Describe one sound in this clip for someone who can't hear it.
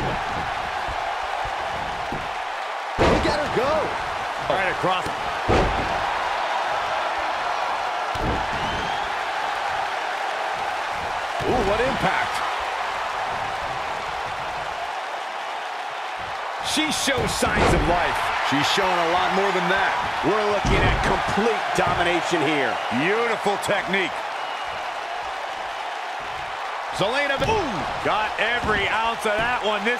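A large crowd cheers steadily throughout.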